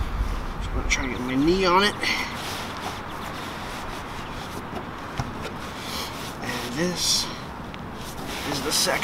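Nylon fabric rustles and crinkles as it is handled.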